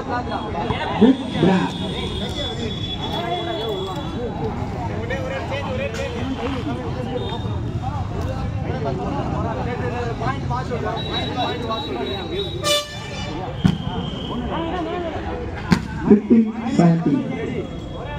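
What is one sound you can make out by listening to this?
A young man shouts loudly nearby.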